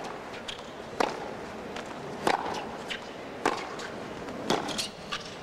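Tennis rackets strike a ball back and forth in a rally.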